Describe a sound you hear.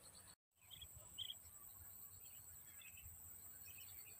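A fishing float plops lightly into calm water.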